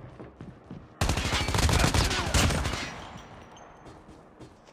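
An assault rifle fires in a video game.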